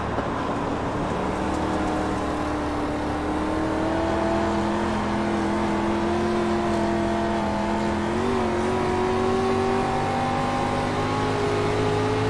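A race car engine roars steadily, its pitch rising and falling as the car speeds along.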